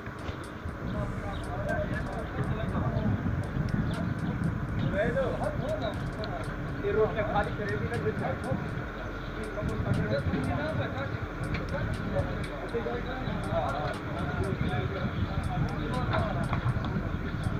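Men talk in the distance outdoors.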